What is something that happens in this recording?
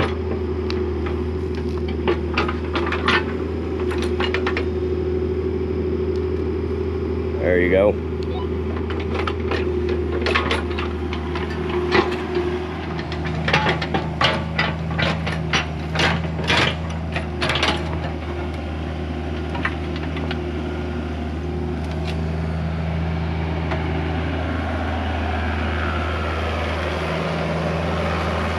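A small excavator's diesel engine drones steadily close by.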